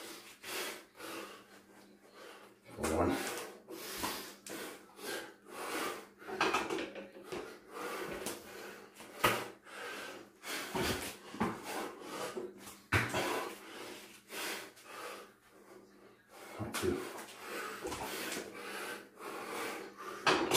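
A man breathes hard while exercising.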